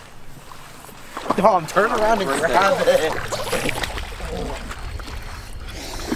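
A boy splashes while wading into shallow water.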